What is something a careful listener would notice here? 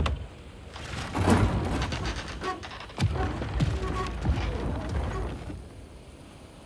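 A wooden cart creaks and rumbles as it is pushed.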